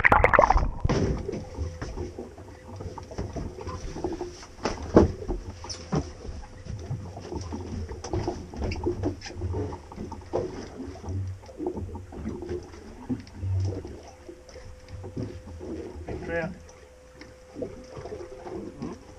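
Wind blows over open water.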